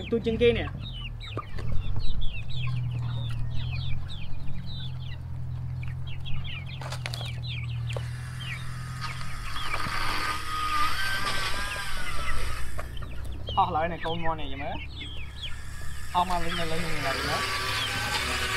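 Young chickens cheep and peep close by.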